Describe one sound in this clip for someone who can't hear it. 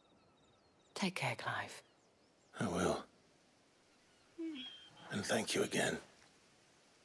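A man answers in a low, calm voice.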